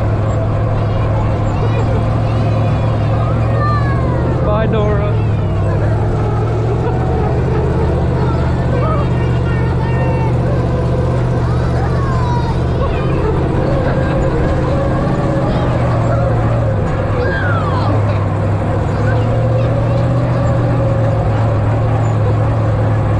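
An engine rumbles steadily as an open off-road vehicle drives along.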